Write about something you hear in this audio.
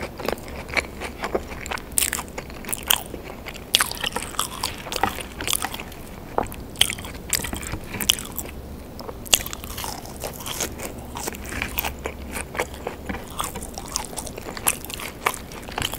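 Fingers rustle and pick through crisp fries.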